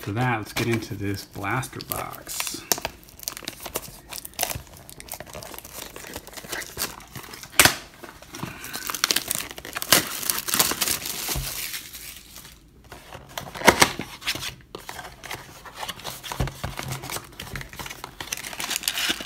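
A cardboard box rustles and scrapes as hands open it.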